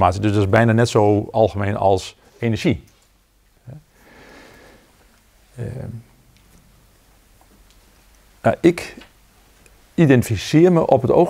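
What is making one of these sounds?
An older man speaks calmly and slowly, with pauses, close by.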